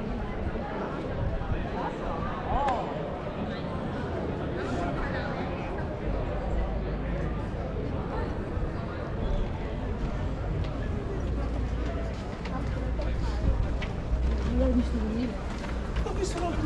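People chatter in the distance outdoors.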